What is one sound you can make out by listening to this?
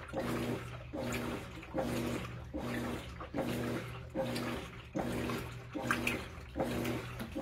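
Water sloshes and splashes inside a washing machine drum.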